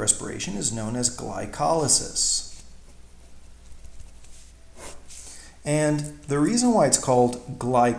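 A pen scratches softly across paper.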